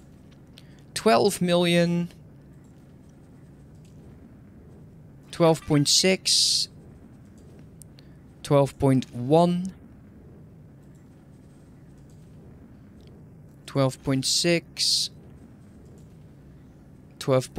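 A young man speaks into a close microphone in short bursts with pauses.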